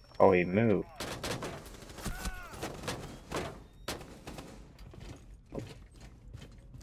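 Gunshots crack out in quick bursts.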